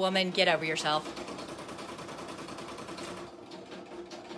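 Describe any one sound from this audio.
A sewing machine stitches with a fast, steady whirring.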